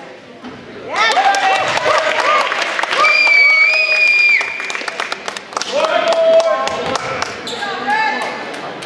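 Spectators cheer and shout.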